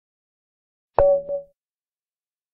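A chess app plays a short move sound as a piece is placed.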